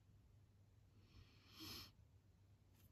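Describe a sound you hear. A marker scratches and rustles softly on paper.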